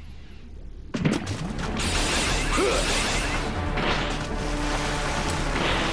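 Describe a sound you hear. An energy blast bursts and crackles.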